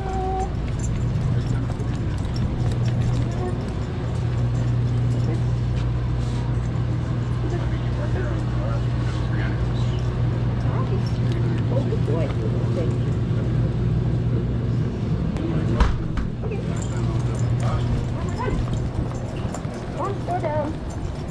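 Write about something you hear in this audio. Refrigerated cases hum steadily.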